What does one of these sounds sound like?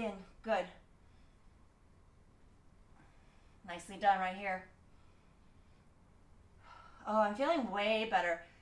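A young woman speaks in short, breathless bursts close by.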